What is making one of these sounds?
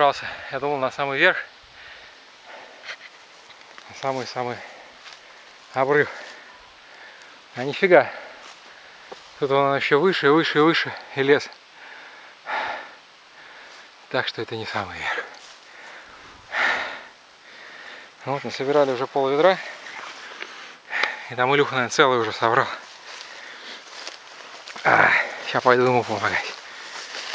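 A man talks close to the microphone in short bursts.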